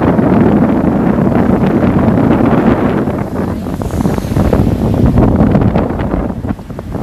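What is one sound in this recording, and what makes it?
Wind blusters loudly across the microphone outdoors.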